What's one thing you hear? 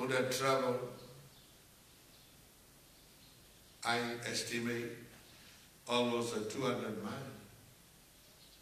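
An elderly man chants in short, drawn-out phrases nearby, with pauses between them.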